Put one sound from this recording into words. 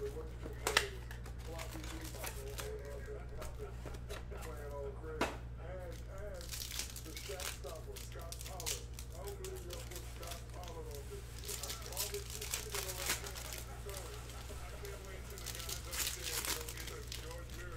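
Foil card packs crinkle and rustle as hands tear them open.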